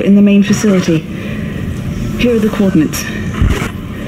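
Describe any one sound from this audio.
A young woman speaks calmly through a crackling radio.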